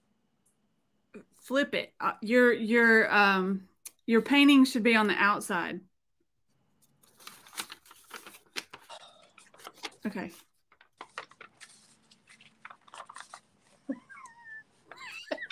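Paper crinkles as it is folded.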